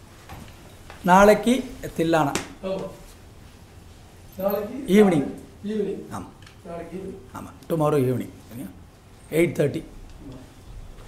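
A middle-aged man speaks with animation into a microphone, close by in a room.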